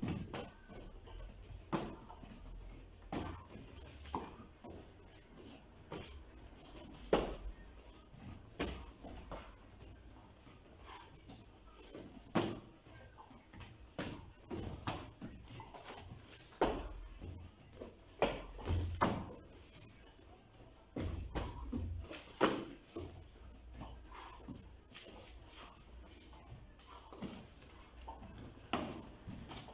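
Kicks and punches thud sharply against padded mitts, again and again.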